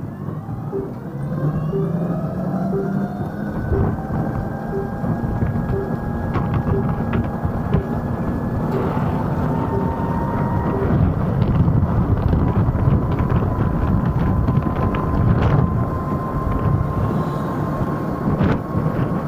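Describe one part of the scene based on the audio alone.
Wind rushes past loudly as the scooter rides along.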